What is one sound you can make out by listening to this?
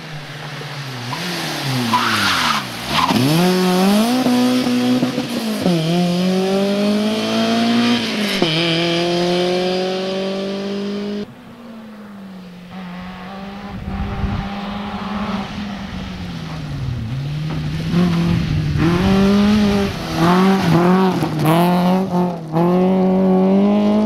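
A rally car engine revs hard and shifts gears as the car speeds past.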